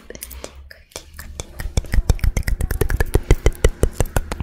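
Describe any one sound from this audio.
Long fingernails tap and click rapidly near a microphone.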